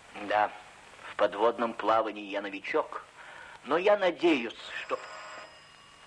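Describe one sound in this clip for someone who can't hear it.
A middle-aged man speaks tensely nearby.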